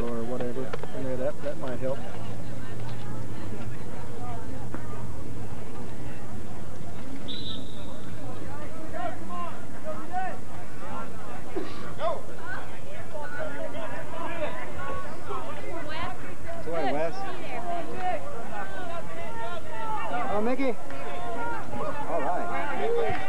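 A crowd of spectators chatters outdoors nearby.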